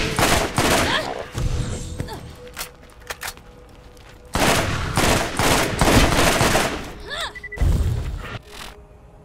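A rapid-fire gun shoots in loud bursts.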